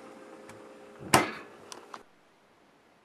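A refrigerator door thuds shut.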